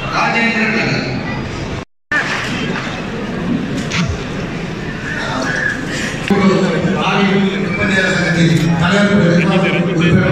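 A man speaks into a microphone, heard through loudspeakers.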